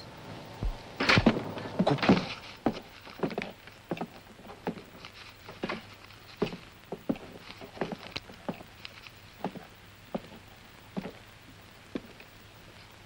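Playing cards snap down onto a table in quick, sharp slaps.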